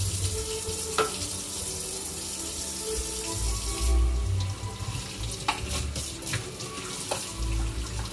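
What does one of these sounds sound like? Dishes clink and knock against each other in a sink.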